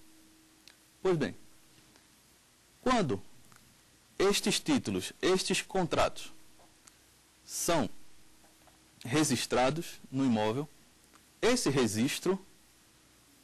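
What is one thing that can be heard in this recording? A man speaks clearly into a microphone, in short phrases broken by pauses.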